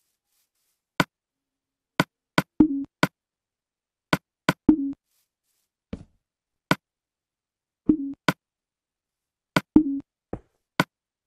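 Sharp little clicks tick now and then.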